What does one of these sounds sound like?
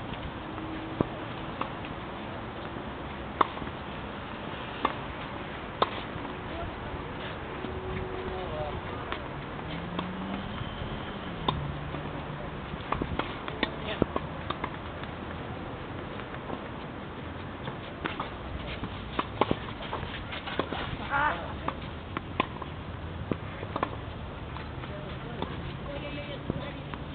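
Tennis balls bounce on a clay court.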